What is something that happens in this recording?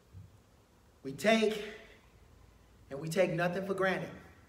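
A man speaks with emphasis into a microphone, in a room with some echo.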